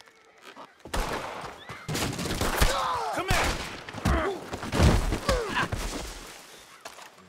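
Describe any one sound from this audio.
A man shouts and groans angrily.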